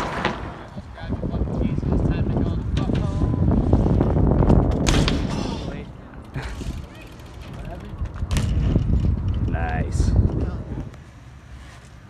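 BMX bike tyres rumble over a metal ramp.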